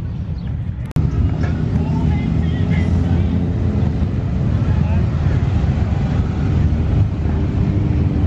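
Motorcycle engines rumble loudly nearby.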